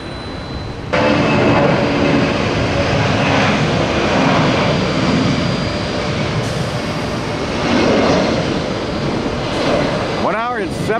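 A jet airliner's engines roar as it speeds along a runway.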